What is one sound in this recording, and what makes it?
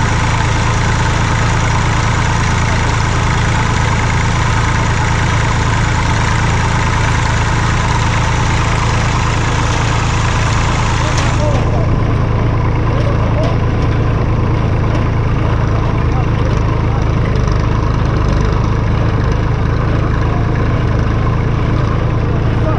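A tractor engine runs loudly close by with a steady rumble.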